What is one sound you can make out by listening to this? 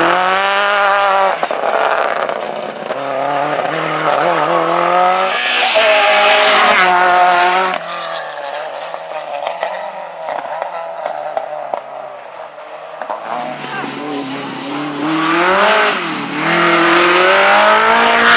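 A rally car engine roars and revs hard as it speeds past.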